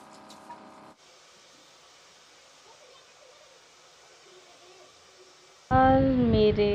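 Water sprays from a shower head onto hair.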